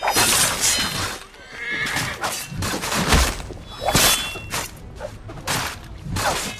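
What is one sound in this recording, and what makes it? Men grunt and shout while fighting.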